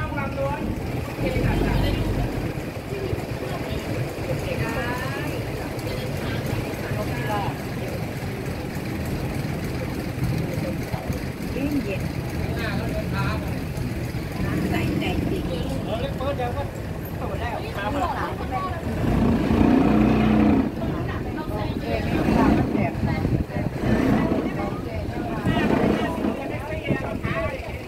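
A boat engine drones steadily throughout.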